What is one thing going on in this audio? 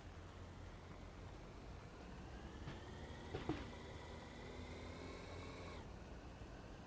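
A car engine revs up as the car speeds away.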